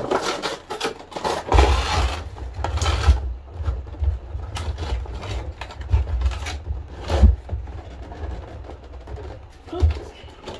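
Cardboard and plastic packaging rustle and crinkle in hands.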